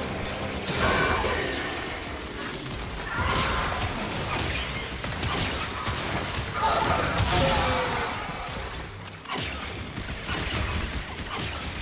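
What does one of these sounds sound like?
Impacts and explosions thump and crackle.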